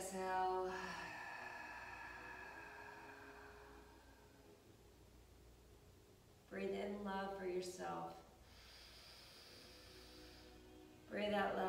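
A woman speaks softly and calmly, close by, in a slightly echoing room.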